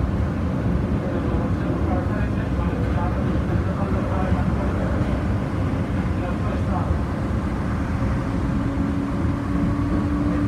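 A train rumbles steadily along a track.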